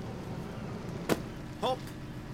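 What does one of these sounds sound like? A bag thuds onto a wooden dock.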